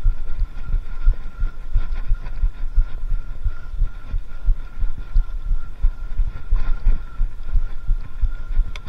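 Bicycle tyres rumble and bump over a dirt trail.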